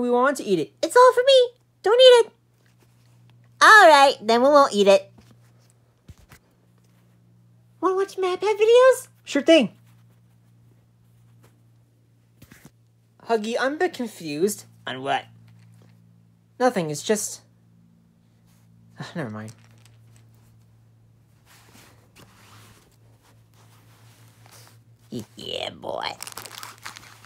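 Soft plush toys rustle as a hand moves them about.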